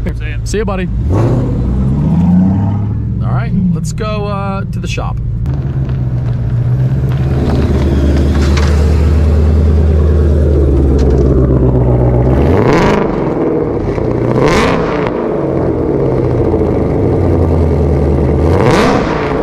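A car engine revs sharply several times, with a loud exhaust roar.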